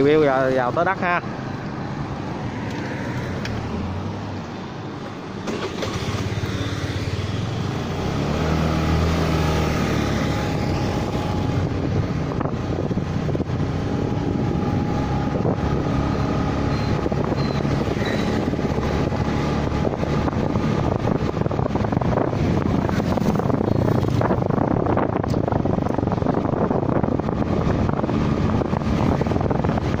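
A motorbike engine hums steadily close by while riding along a road.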